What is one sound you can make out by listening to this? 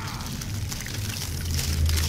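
A fiery blast roars and whooshes.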